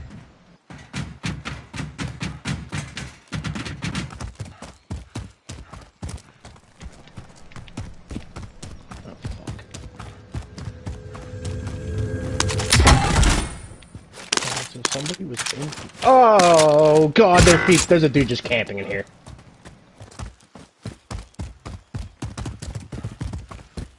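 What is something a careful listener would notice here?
Quick footsteps run over dirt and wooden boards.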